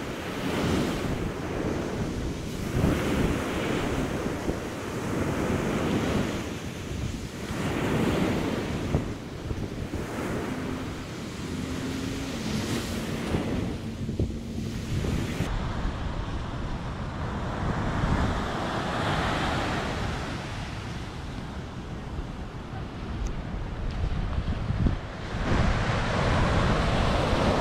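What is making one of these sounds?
Waves wash onto a sandy shore in slow surges.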